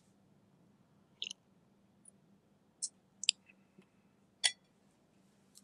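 A man sips water from a glass.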